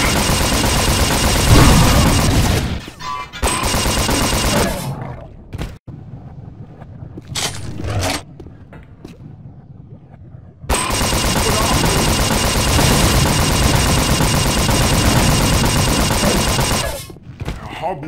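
A heavy gun fires in rapid, loud bursts.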